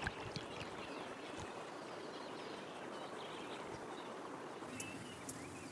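Water ripples gently as a crocodile swims.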